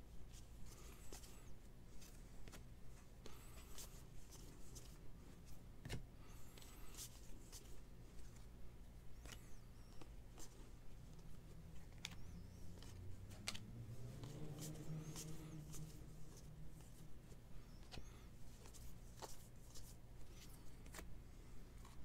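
Cards are flicked and shuffled by hand with soft snapping clicks.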